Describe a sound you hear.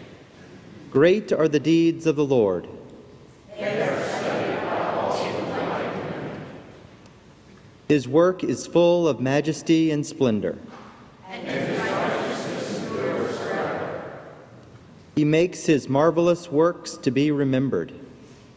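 A man reads aloud into a microphone in short phrases.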